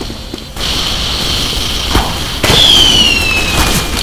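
A rocket launcher fires with loud blasts.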